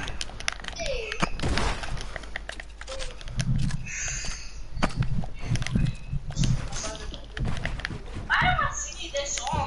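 Wooden ramps and walls snap into place in quick bursts of clicks.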